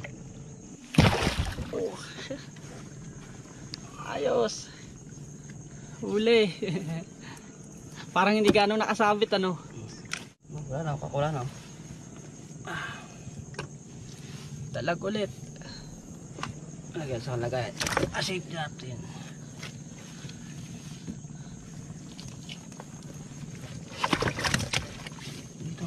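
Fish thump and flap against a wooden boat.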